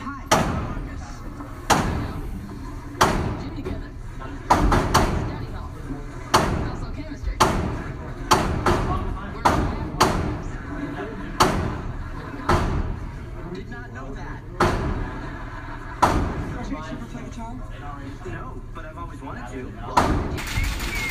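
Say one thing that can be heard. Gunshots bang sharply, one after another, echoing in an enclosed room.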